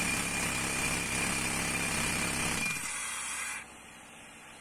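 A pneumatic rock drill roars and hisses loudly against stone.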